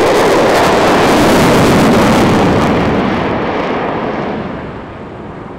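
A jet engine roars loudly overhead and fades.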